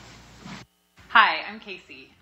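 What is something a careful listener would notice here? A woman speaks and laughs through loudspeakers.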